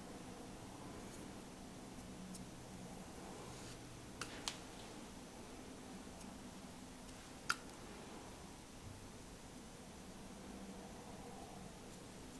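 A brush softly spreads cream across skin.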